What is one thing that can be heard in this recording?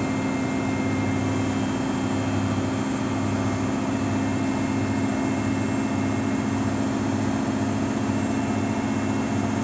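A front-loading washing machine hums and whirs as its drum spins at high speed.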